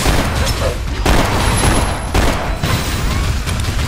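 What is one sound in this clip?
Gunshots and blasts boom in quick bursts.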